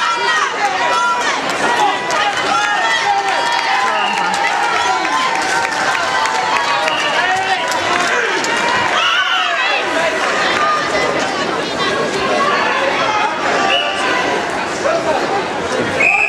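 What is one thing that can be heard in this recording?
A crowd of many people chatters in a large echoing hall.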